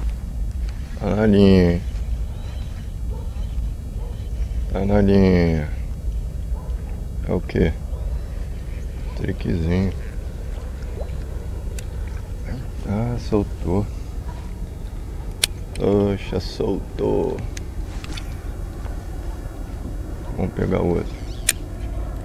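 A man speaks nearby with animation, in short bursts.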